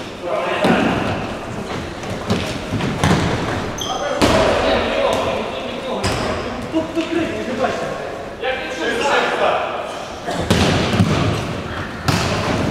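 Men shout to each other during play.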